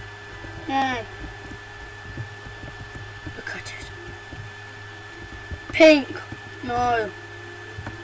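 A young boy speaks in short bursts, close to a microphone.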